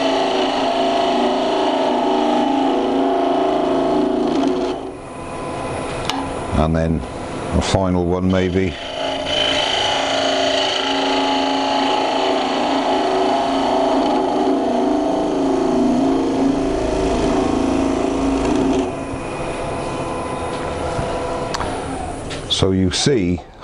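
A chisel cuts into spinning wood with a rough scraping whir.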